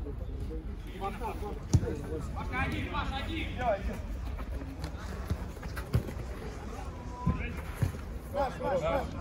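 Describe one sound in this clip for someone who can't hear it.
Men shout to each other outdoors.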